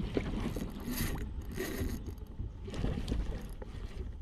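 A fishing reel whirs and clicks as its handle is cranked.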